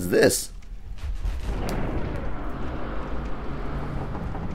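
A heavy door grinds slowly open with a low rumble.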